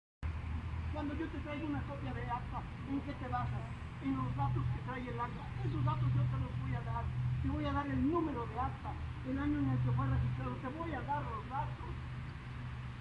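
A man talks with animation outdoors.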